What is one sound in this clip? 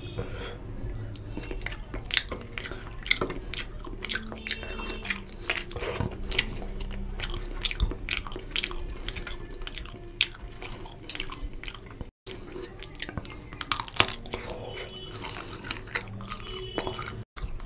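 A man chews loudly and smacks his lips close to a microphone.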